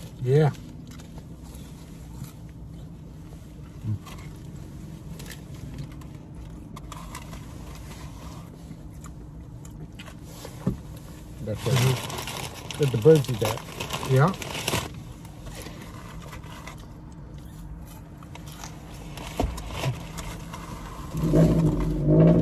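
Paper food wrappers rustle and crinkle.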